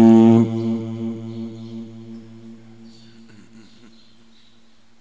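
A man chants a long, held note into a microphone, and it rings out and fades in a large echoing hall.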